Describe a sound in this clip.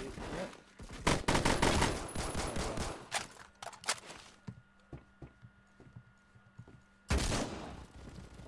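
Gunshots fire in rapid bursts, loud and sharp.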